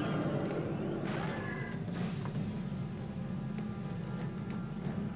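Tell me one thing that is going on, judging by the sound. Low droning game music plays steadily.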